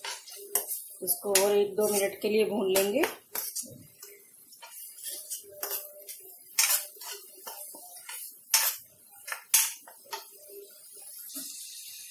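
A metal spatula scrapes and clatters against a metal pan.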